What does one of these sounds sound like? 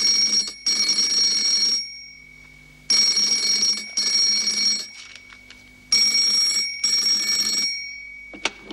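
A telephone rings loudly in bursts.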